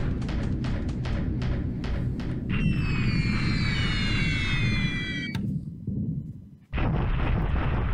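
Bombs explode in a rumbling bombardment.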